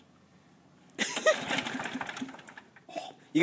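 A lawn mower's starter cord is yanked with a rough whirr.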